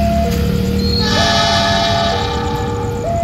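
A diesel locomotive sounds its horn.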